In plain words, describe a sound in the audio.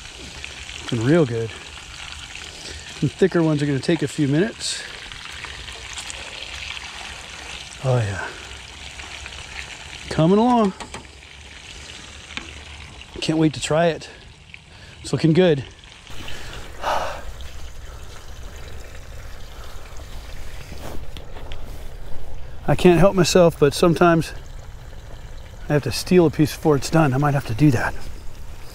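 Food sizzles and crackles in a hot frying pan.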